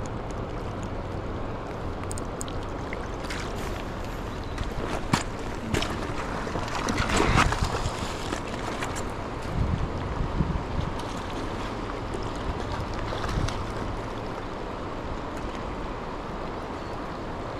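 A river rushes steadily over stones nearby.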